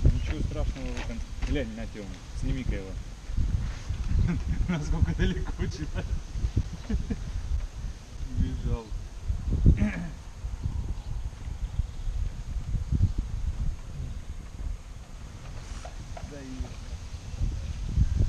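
A man talks nearby, calmly.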